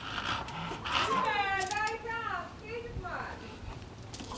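A dog whines in a high, wavering pitch.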